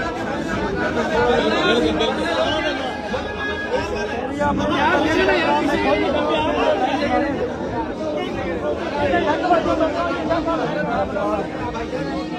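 Several people talk over each other in a noisy crowd.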